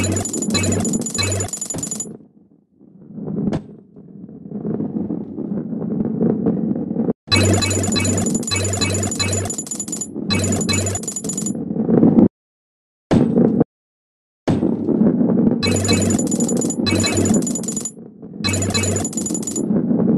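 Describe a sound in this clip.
Coins chime brightly in quick bursts as they are collected.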